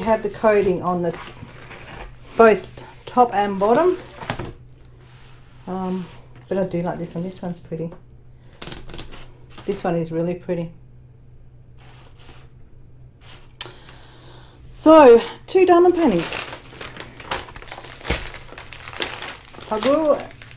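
Plastic sheeting rustles and crinkles under hands.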